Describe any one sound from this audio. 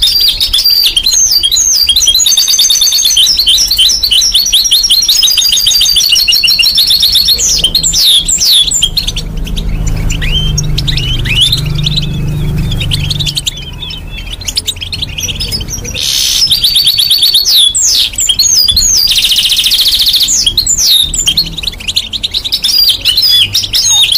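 A parrot chirps and whistles loudly close by, in rapid shrill trills.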